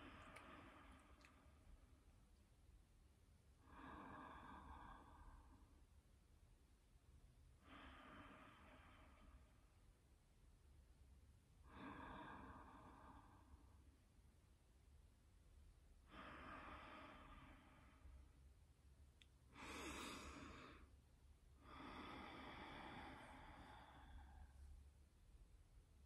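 A woman speaks softly and whispers close to a microphone, in short spells with pauses between.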